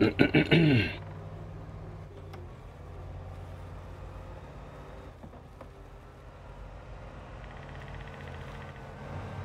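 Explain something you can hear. A truck engine rumbles steadily as the vehicle drives over rough ground.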